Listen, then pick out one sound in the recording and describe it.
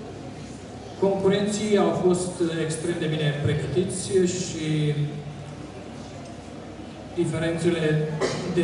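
A man reads out aloud through a microphone and loudspeakers in an echoing hall.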